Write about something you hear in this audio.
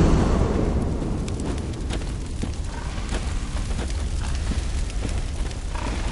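Footsteps crunch on wet, stony ground.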